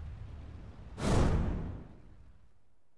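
A bright whoosh sweeps past.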